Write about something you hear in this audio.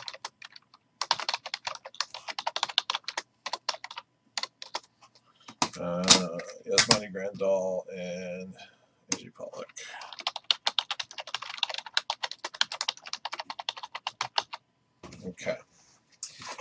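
A keyboard clatters with quick typing.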